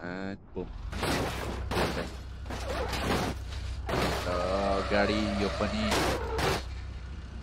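A car crashes with loud metallic bangs and crunches.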